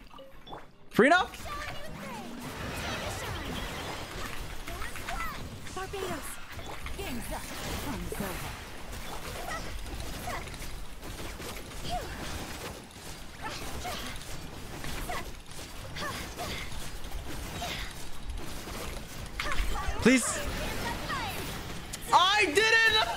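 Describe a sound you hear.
Game effects whoosh and burst during a fight.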